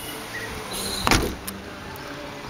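A car tailgate slams shut with a heavy thud.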